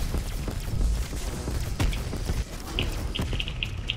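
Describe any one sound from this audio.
A gun fires in short, sharp bursts.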